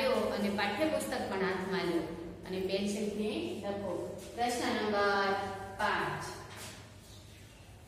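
A woman speaks clearly and with expression, close by.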